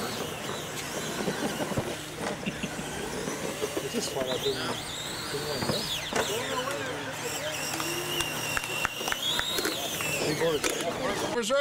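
A toy truck's electric motor whines, rising and falling in pitch.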